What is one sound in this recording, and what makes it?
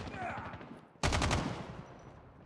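A rifle fires a short rapid burst.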